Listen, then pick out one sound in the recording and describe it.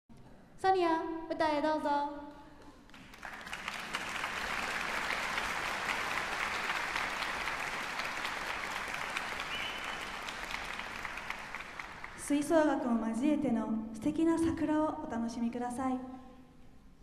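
A woman speaks clearly through a microphone in a large echoing hall.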